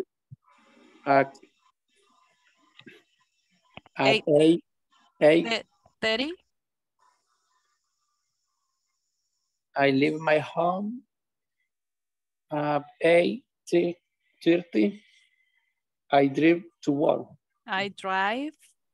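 A woman speaks calmly, in short phrases, over an online call.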